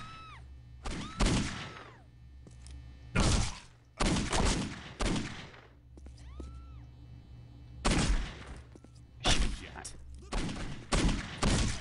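Pistol shots ring out loudly, one at a time.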